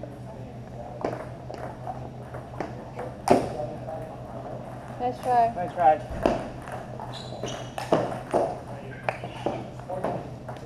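A ping-pong ball clicks back and forth between paddles and a table.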